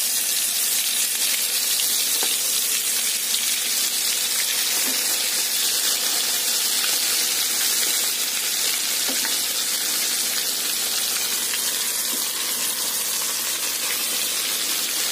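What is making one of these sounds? Oil sizzles and crackles loudly as food deep-fries.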